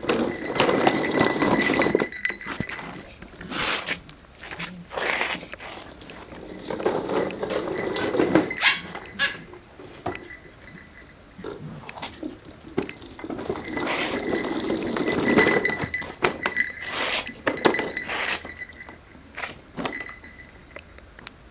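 Small bells on a toy jingle.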